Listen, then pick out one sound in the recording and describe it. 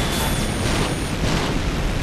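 Gunfire bursts from a mech's weapon.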